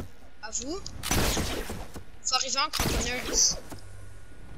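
A pickaxe strikes wood with sharp thuds.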